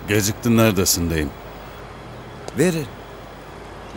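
A man speaks in a strained voice close by.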